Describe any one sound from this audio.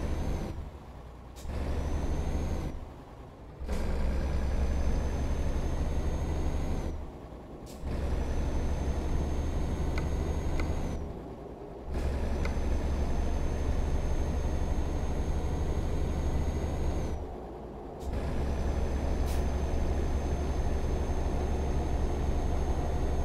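A truck engine drones steadily, dropping away briefly every few seconds as the gears change.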